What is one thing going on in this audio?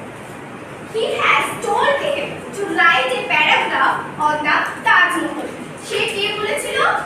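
A woman speaks clearly and steadily nearby.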